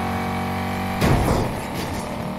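A car crashes into another car with a loud metallic bang.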